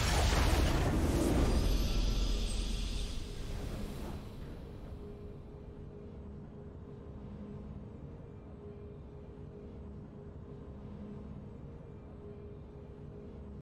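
A triumphant musical fanfare plays softly.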